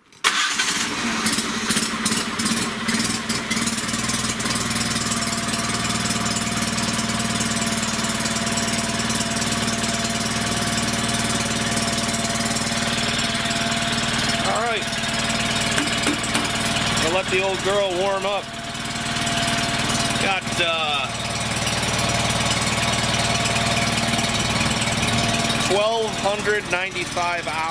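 A small engine idles steadily close by.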